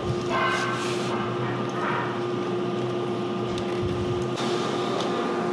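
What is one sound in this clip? A hex key clicks against metal as screws are turned.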